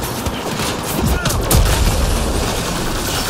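Heavy explosions boom.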